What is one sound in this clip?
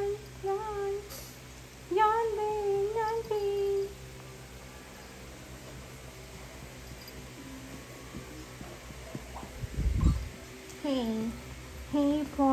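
A puppy whines in high, drawn-out cries close by.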